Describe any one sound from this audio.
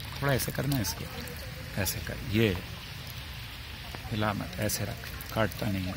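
Water trickles and splashes into a shallow stream.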